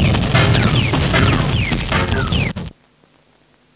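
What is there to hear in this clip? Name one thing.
Loud music plays from a record turntable, then cuts off suddenly.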